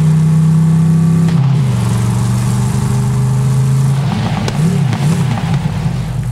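Water splashes as a vehicle drives through it.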